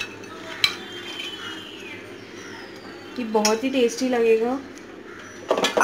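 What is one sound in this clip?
A metal bowl clinks against a metal pot.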